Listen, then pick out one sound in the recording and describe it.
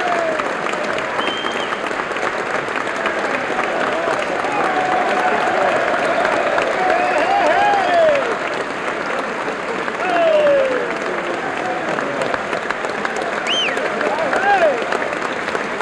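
A crowd of men and women cheers and whistles.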